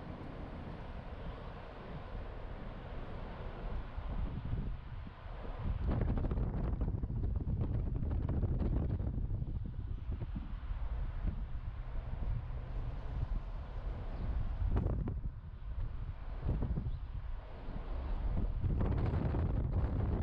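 A car drives slowly along a street with a low, rumbling road noise.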